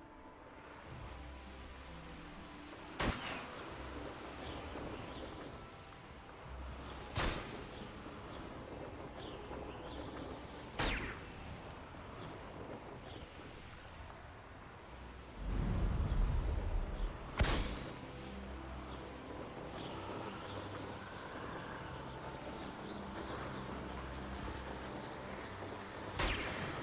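Wind rushes steadily past while flying through the air.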